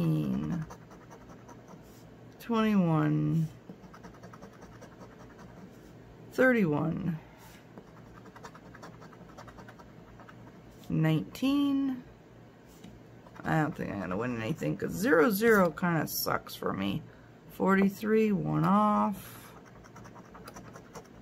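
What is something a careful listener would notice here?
A coin scratches on a card.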